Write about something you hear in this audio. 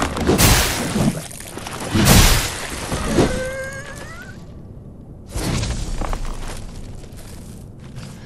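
Armoured footsteps thud on dirt.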